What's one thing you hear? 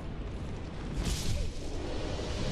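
A sword strikes a body with a heavy impact.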